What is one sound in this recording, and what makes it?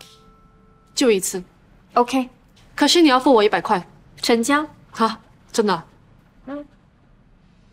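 A young woman speaks calmly and warmly up close.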